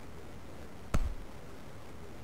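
A cricket bat strikes a ball with a sharp knock.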